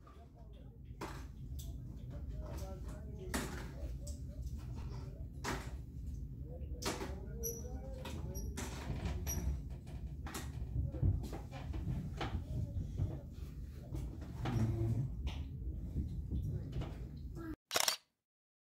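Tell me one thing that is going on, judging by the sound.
A phone's shutter clicks again and again.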